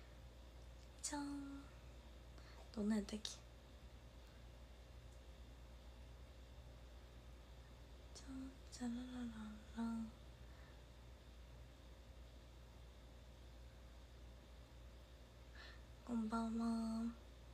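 A young woman speaks calmly and softly, close to a microphone, with long pauses.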